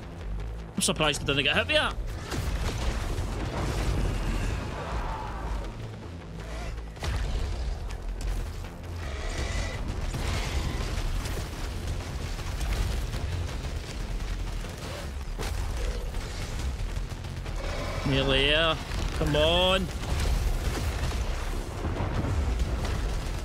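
Deep rumbling booms roll on throughout.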